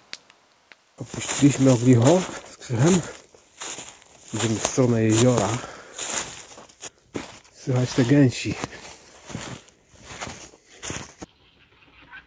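Footsteps crunch through snow and dry grass.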